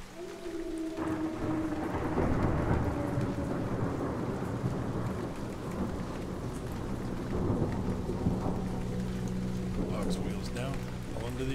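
An aircraft rumbles as it rolls over bumpy ground.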